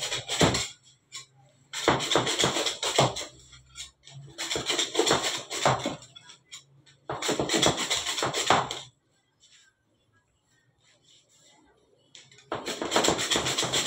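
A metal scraper scrapes and chops across a table in quick bursts.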